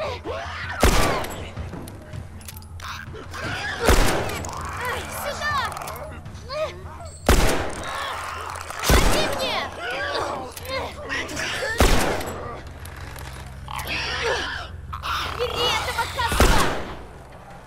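A pistol fires single loud shots every few seconds.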